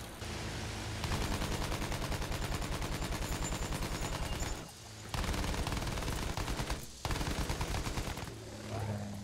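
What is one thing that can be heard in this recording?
Twin machine guns fire in rapid bursts.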